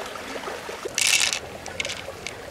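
Water splashes briefly as hands rinse something.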